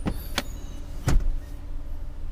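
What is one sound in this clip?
A rear seat back folds down and thuds flat.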